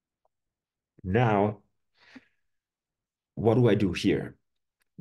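A man speaks calmly into a close microphone, as if over an online call.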